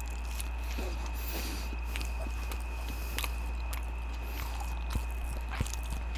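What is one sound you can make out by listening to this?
A man chews food softly close to a microphone.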